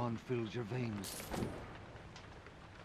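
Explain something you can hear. Coins clink as they are picked up.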